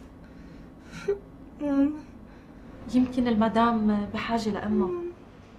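A young woman groans weakly close by.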